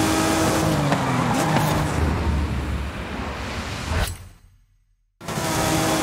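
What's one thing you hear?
A sports car engine roars at high revs.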